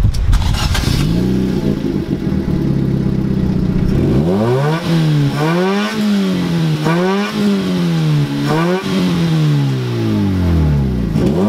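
A car's loudspeakers play deep bass tones that sweep up and down.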